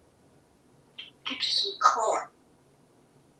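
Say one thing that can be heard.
A parrot squawks and whistles up close.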